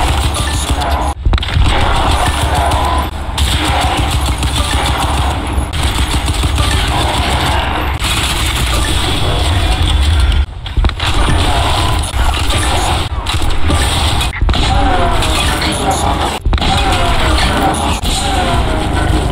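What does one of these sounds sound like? Heavy gunfire rattles rapidly.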